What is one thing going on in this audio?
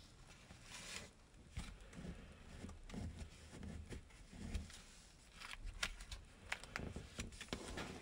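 Fingers press and crease stiff paper against a hard surface.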